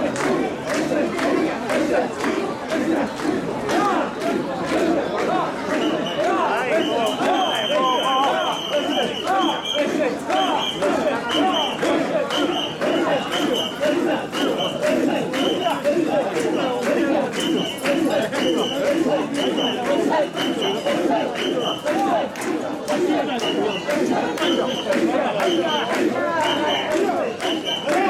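A crowd of men chant loudly in rhythm close by.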